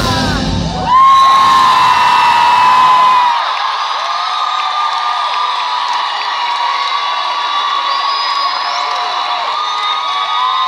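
A crowd of young people screams and cheers.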